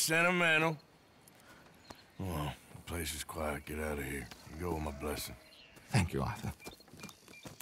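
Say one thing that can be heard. A man replies briefly in a low voice.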